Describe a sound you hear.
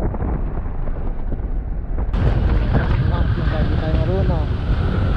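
Wind roars and buffets against the microphone of a moving motorcycle.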